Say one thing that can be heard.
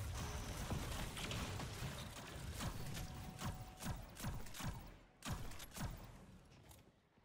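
Rapid rifle shots crack out.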